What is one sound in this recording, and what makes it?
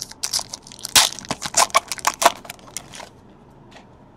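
Hands tear open a foil wrapper of a trading card pack.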